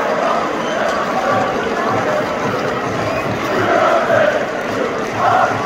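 A large crowd cheers and claps.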